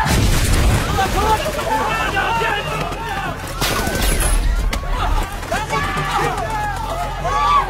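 Men shout urgently.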